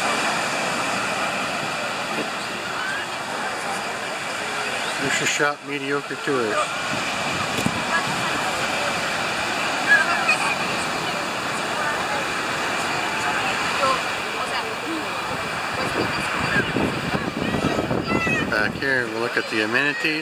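Waves break and wash onto the shore steadily.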